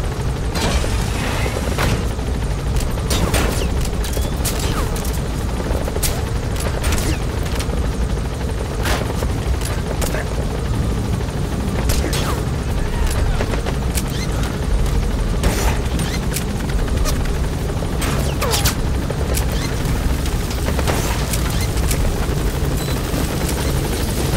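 Gunshots crack in irregular bursts.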